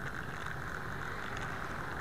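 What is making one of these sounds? A car passes by.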